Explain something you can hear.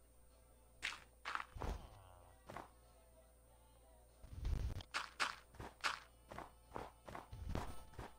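Blocks are placed one after another with short, soft thuds.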